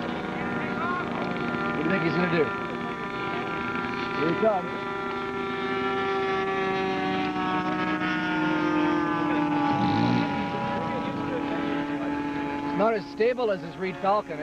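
A jet engine drones steadily high overhead.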